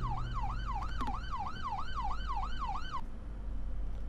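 A police siren wails rapidly and then cuts off.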